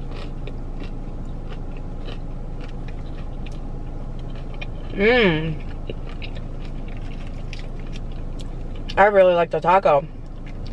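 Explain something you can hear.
A young woman chews and crunches food close by.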